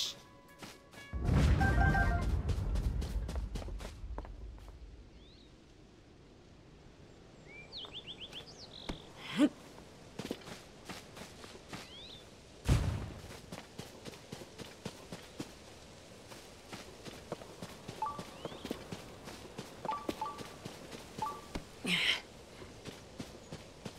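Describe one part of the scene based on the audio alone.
Footsteps pad softly across grass.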